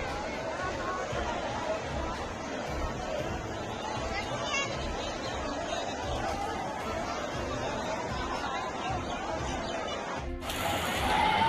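A crowd of men and women talk and shout outdoors.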